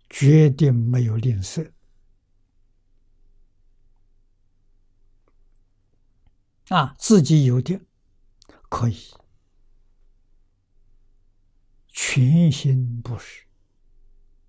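An elderly man speaks calmly into a close microphone, in short phrases with long pauses.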